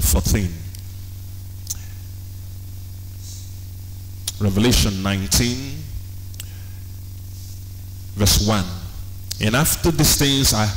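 A young man speaks slowly and calmly through a microphone in an echoing room.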